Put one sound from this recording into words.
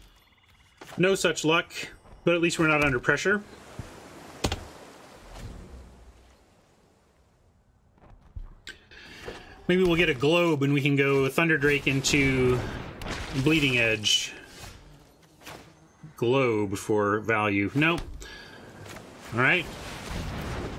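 A man talks casually into a close microphone, in bursts with pauses.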